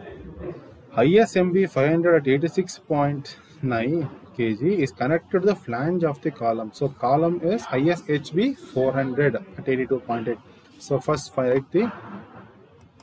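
A man speaks calmly and steadily, as if explaining, close to a microphone.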